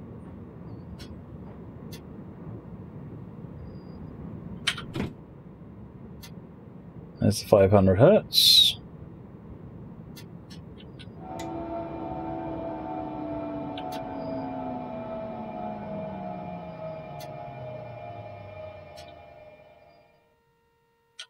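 A train rumbles along the tracks.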